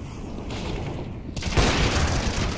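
A gunshot rings out in a video game.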